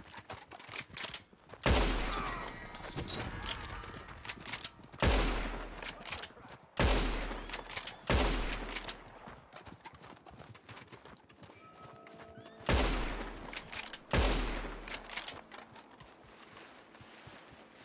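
A rifle's lever clicks as it is worked.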